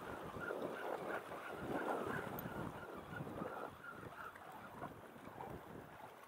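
Choppy water laps and splashes close by.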